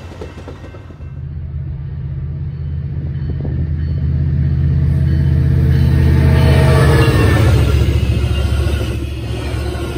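A train's engine rumbles low and grows louder as the train passes close by.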